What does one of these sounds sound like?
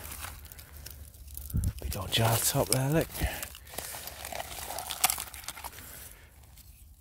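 A gloved hand scrapes and scoops through crumbly soil.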